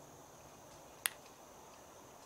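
A putter taps a golf ball with a sharp click.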